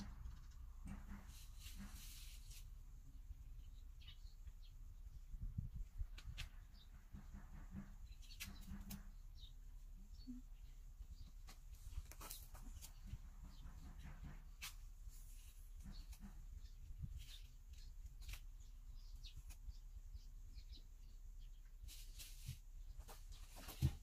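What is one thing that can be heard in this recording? Hands rub and tap along a window frame.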